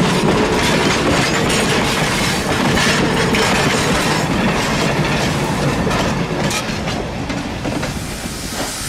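Railway cars and a caboose roll past close by, with wheels clattering on rails.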